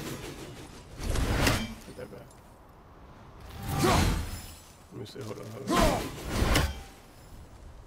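Loud whooshing blows strike.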